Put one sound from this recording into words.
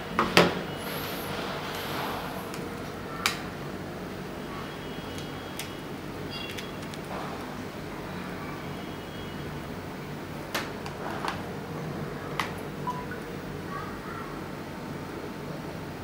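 A plug clicks into a device's socket.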